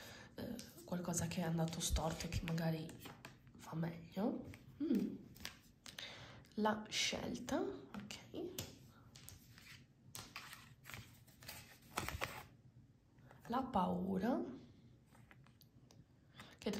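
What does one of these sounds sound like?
Playing cards flick and slap softly onto a wooden table.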